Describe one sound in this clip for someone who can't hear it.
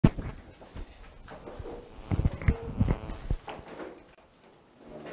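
An elderly man speaks quietly into a close microphone.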